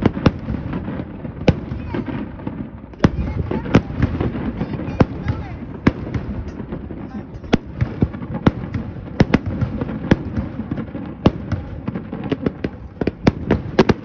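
Firework sparks crackle far off.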